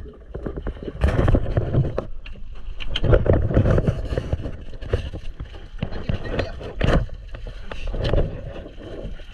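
Water splashes against the side of a boat.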